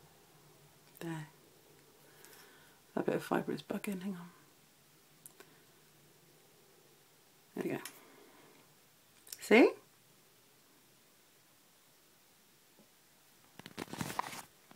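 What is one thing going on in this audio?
A young woman speaks softly in short bursts close to a microphone.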